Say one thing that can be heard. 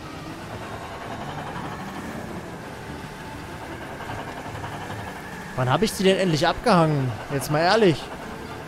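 A truck engine hums steadily as the truck drives along.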